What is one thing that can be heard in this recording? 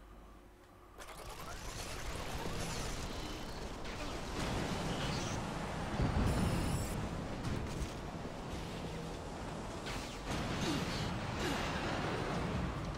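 Heavy cannon blasts boom over a loud rumble.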